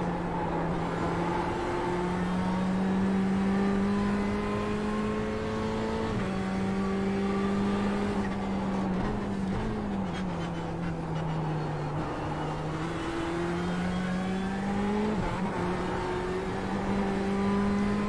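A racing car engine roars steadily, its pitch climbing and dropping with each gear change.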